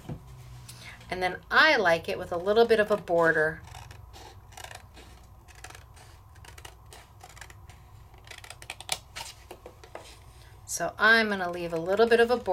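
Scissors snip through thick paper.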